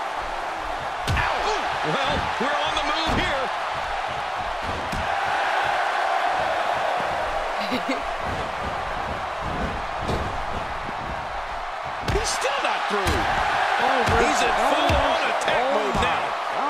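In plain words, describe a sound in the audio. A crowd roars and cheers steadily in a large arena.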